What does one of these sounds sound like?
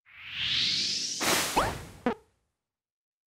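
A magical shimmer whooshes and sparkles.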